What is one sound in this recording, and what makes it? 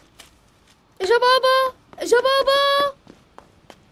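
A young woman exclaims in a high, excited voice.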